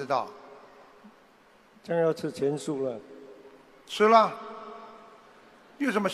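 A man speaks in short bursts through a microphone, echoing in a large hall.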